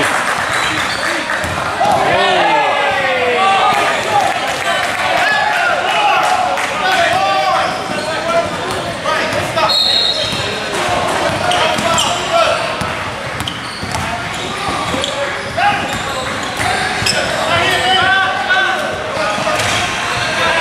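Sneakers squeak on a court floor in an echoing gym.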